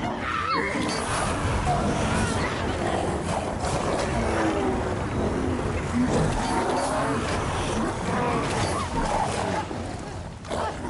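A flamethrower roars with a loud rushing blast of fire.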